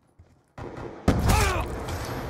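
A gun fires loudly at close range.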